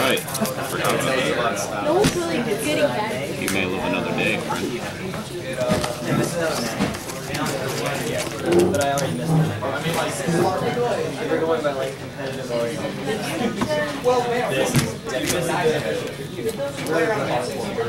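Playing cards slap softly onto a play mat.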